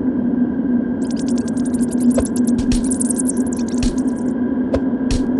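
Birds' wings flutter rapidly as a flock takes off.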